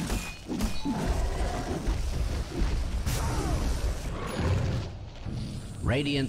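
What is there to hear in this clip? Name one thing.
Spell effects crackle and whoosh during a fight in a game.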